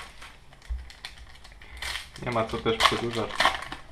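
A foil packet tears open.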